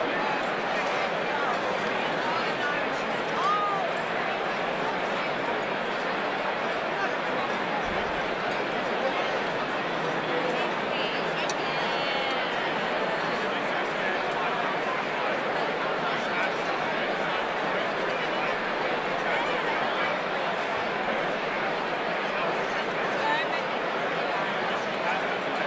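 A large crowd of men and women chatters all at once in a big echoing hall.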